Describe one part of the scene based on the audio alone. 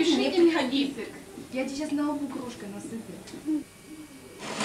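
Women talk and chatter nearby.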